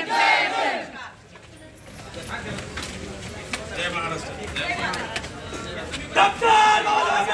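A crowd of men and women murmurs and talks outdoors.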